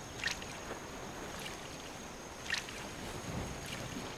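Water splashes softly.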